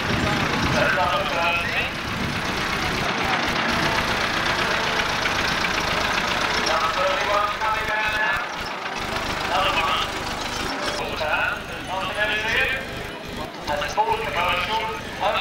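A lorry engine idles nearby.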